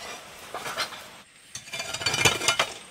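A hoe scrapes and chops into dry soil.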